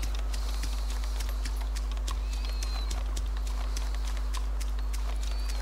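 Footsteps run quickly over gravel.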